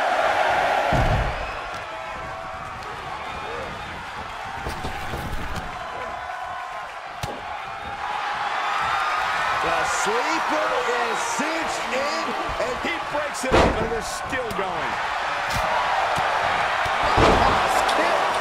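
Heavy bodies thud loudly onto a wrestling ring mat.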